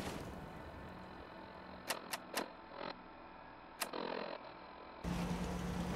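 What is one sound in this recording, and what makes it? Soft electronic clicks sound as menu pages switch.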